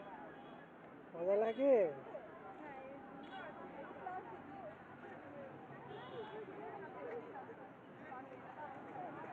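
Women and children chatter in the background outdoors.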